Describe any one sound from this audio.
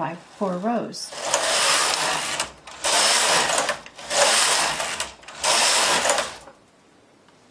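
A knitting machine carriage slides back and forth with a loud rattling whoosh.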